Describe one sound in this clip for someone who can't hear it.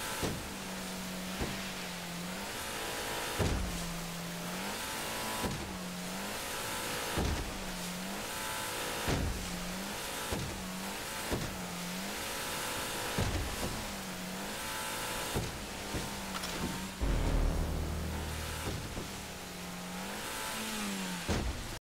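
A boat engine roars steadily.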